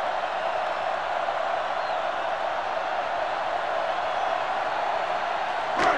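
A large crowd roars steadily in a stadium.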